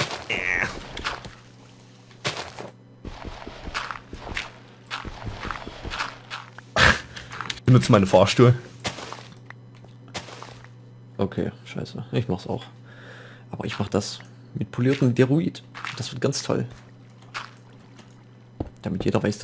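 Blocks crunch and thud as they are dug and placed.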